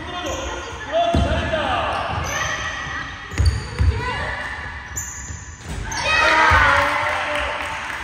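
Young girls shout and call out during play in an echoing gym.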